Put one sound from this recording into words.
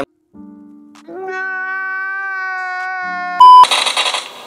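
A man wails loudly, sobbing.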